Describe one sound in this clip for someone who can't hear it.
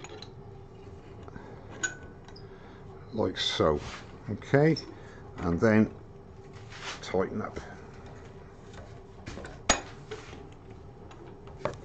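A chuck key clicks and rattles as it tightens a metal chuck.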